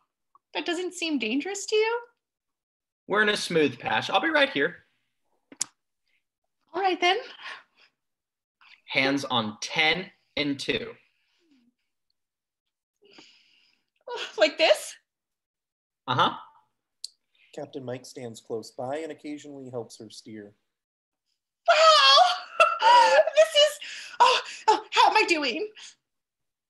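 A young woman speaks and laughs through a headset microphone over an online call.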